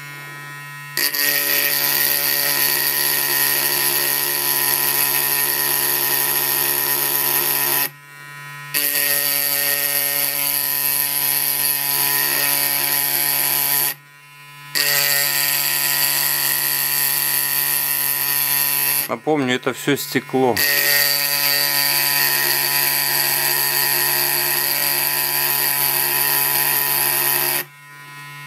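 A homemade rotary engraver whines as its bit grinds into glass, in bursts.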